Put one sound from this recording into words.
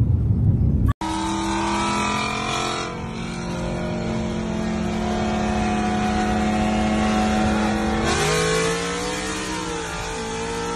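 A car engine drones at high speed, its pitch dropping as it shifts gear.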